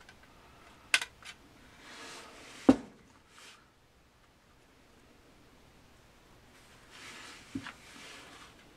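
A hard plastic object knocks and clatters on a tabletop.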